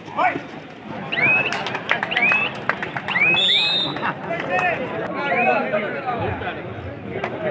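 A crowd cheers and whistles loudly.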